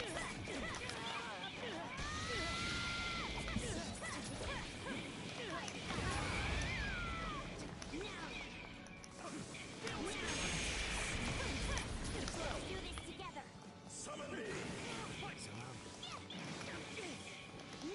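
Blows and hits land with sharp impacts.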